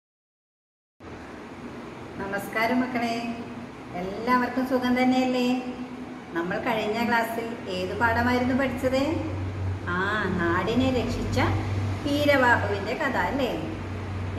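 A middle-aged woman speaks calmly and warmly, close to the microphone.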